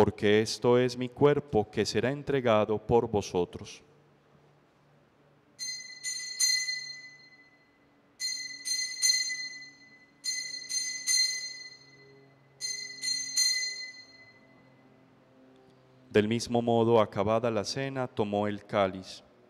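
A young man speaks slowly and solemnly into a microphone.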